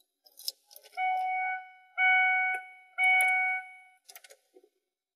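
A car's warning chime beeps three times.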